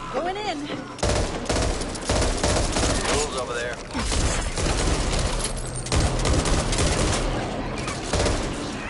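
Gunfire rattles in rapid bursts, echoing down a tunnel.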